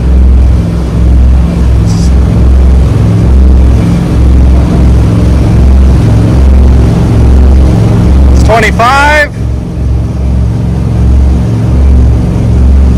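Boat engines roar loudly and steadily, rising slightly in pitch.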